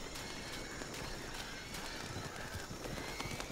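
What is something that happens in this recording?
Footsteps crunch through leaves and undergrowth.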